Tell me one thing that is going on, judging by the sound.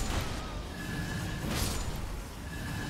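A sword swishes through the air and strikes.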